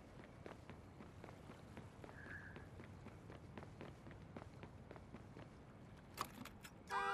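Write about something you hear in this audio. Footsteps run quickly across pavement.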